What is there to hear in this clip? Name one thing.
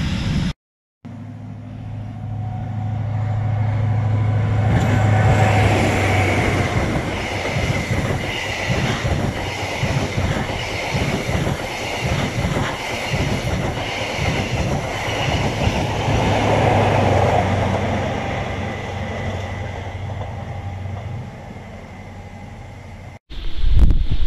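A diesel train approaches and roars past close by, then fades into the distance.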